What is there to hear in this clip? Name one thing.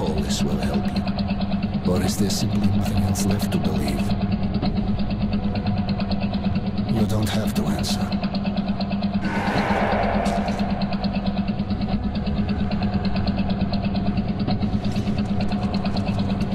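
A motor chugs and rattles steadily throughout.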